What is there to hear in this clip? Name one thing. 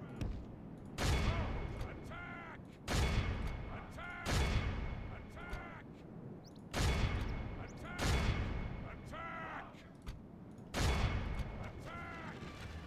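Heavy guns boom again and again, each blast rumbling away.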